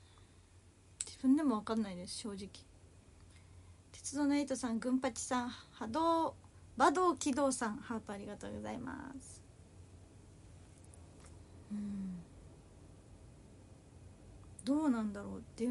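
A young woman speaks expressively and close up, with short pauses.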